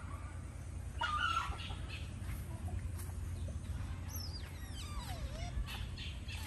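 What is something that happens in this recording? An otter chirps with short, high squeaks.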